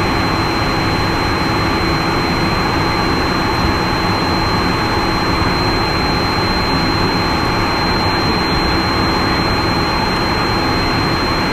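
A high steady whine hums in the aircraft cockpit.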